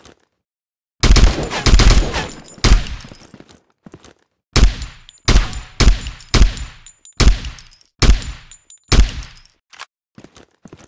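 Gunshots boom in quick, heavy bursts.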